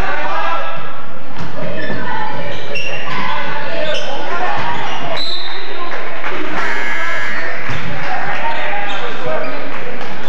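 A crowd of spectators chatters and shouts in a large echoing gym.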